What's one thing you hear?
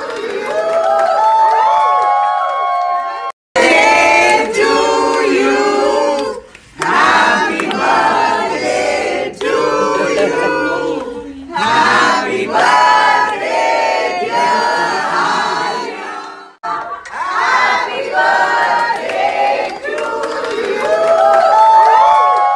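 A group of young women and men sing together close by.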